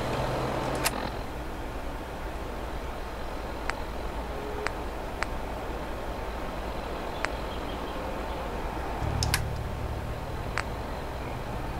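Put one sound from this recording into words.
A handheld device gives short, sharp clicks.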